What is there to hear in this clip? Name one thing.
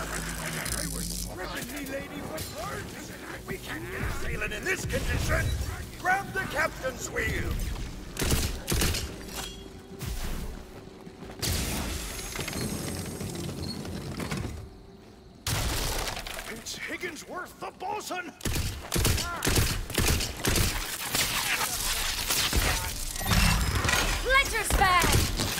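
Blasts and energy zaps crackle.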